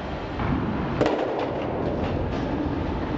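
Bowling pins crash and clatter as the ball strikes them.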